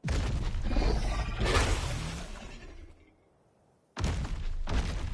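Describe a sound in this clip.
A large creature's heavy footsteps thud on the ground.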